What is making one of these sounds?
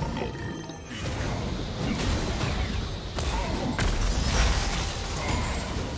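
Magic spells blast and whoosh in a fast fight.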